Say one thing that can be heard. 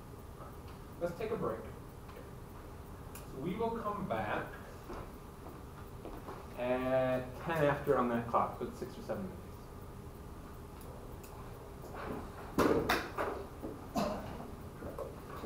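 A man speaks at a distance in a small echoing room.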